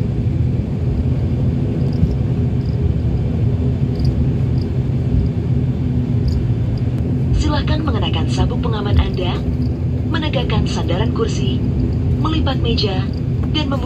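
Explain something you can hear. A propeller plane's engines drone steadily from inside the cabin.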